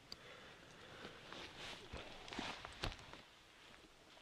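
Footsteps crunch on dry twigs and pine needles.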